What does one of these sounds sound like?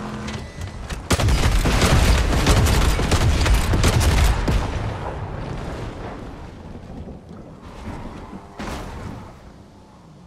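A turret gun fires in rapid bursts.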